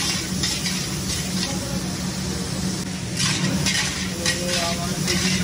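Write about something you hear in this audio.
A metal ladle scrapes and clatters against a wok.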